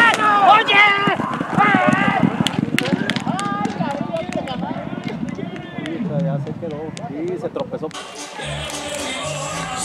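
Horses' hooves pound on dirt as they gallop.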